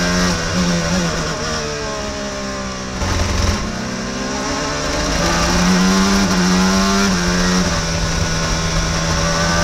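A racing car engine whines loudly up close, its pitch rising and falling with gear changes.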